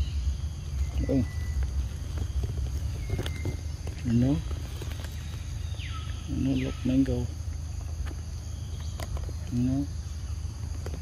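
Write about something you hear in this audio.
A baby monkey squeaks in short high cries.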